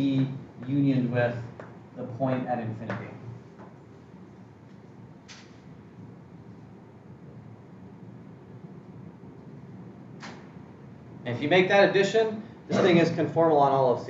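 A man lectures calmly, close by.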